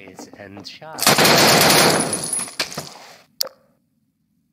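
An automatic rifle fires in full-auto bursts.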